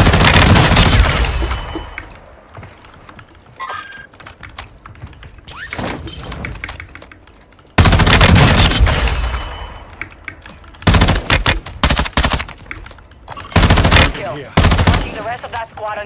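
Gunfire cracks in loud, sharp bursts.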